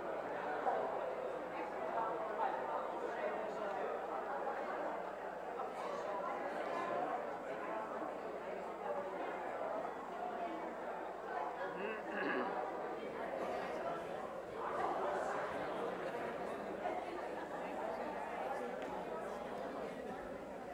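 A crowd of men and women chatter and talk at once in a large echoing hall.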